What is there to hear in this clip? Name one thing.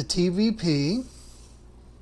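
Dry grains pour into a metal pan.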